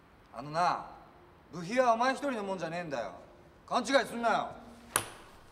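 A young man speaks firmly in an echoing hall.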